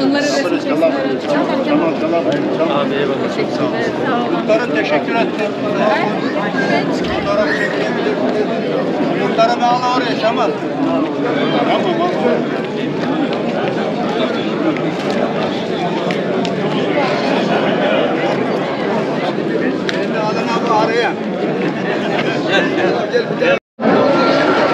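A crowd of men and women chatter and talk over each other close by, outdoors.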